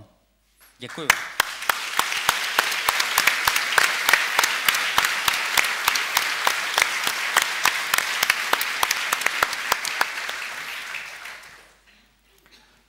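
People clap their hands in steady applause.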